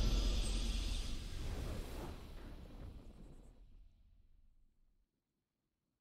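A triumphant game victory fanfare plays loudly and slowly fades away.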